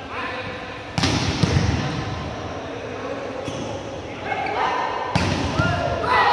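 A volleyball is struck hard in a large echoing hall.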